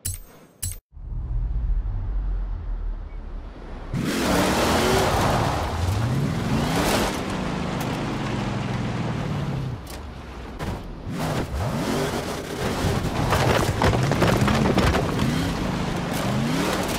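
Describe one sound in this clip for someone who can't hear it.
A car engine revs hard, rising and falling in pitch as it shifts gears.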